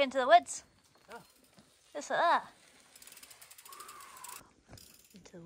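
A mountain bike's tyres roll and crunch over a dirt trail close by.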